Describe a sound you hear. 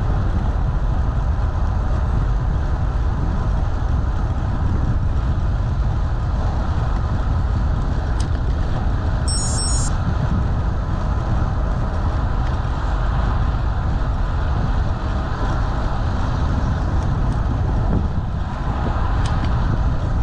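Wind buffets loudly and steadily outdoors.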